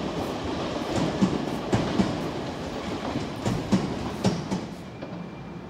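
A train rumbles along the tracks with clattering wheels.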